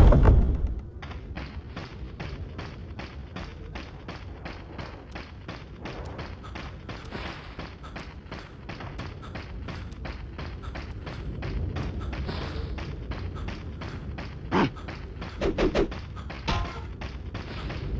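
Footsteps crunch steadily on dirt and gravel.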